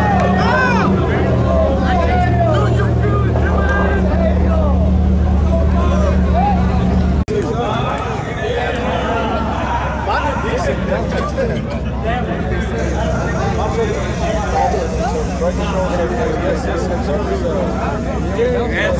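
Tyres screech and squeal as they spin.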